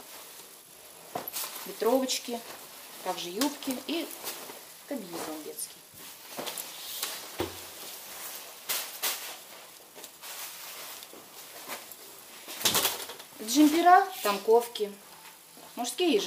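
Clothes rustle and swish as they are handled.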